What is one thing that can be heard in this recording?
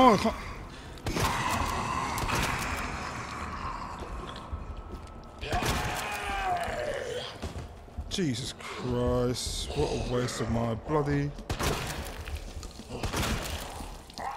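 A shotgun fires loudly, with a short echo.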